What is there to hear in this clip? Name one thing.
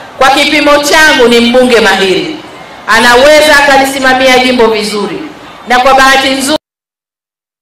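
A middle-aged woman speaks forcefully into a microphone, heard through loudspeakers.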